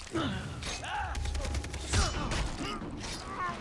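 A blade swishes and strikes flesh with wet thuds.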